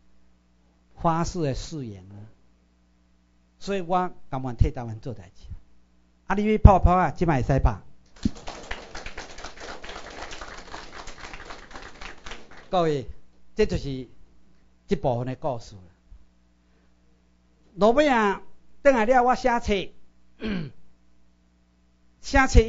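A middle-aged man speaks with animation through a microphone, with short pauses.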